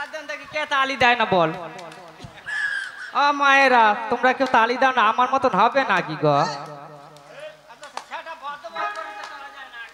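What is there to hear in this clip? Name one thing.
A young man sings with animation into a microphone through loudspeakers.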